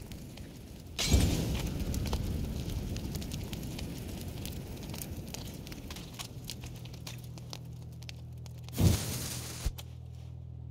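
Flames crackle and roar nearby.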